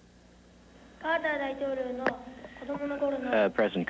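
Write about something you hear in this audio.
A boy speaks into a microphone, heard through loudspeakers.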